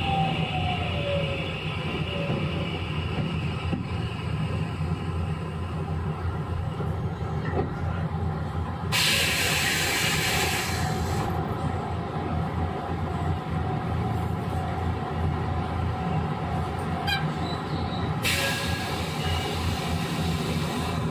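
A train rumbles along the tracks nearby.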